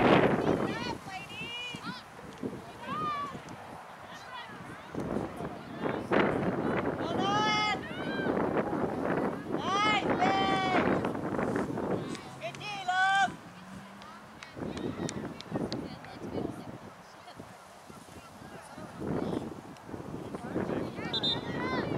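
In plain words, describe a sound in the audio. Young women shout and call to each other across an open field outdoors.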